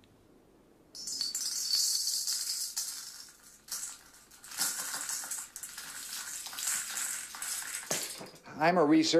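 Gold grains trickle and patter into a small metal pan.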